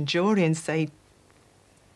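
A woman speaks briefly and quietly, close by.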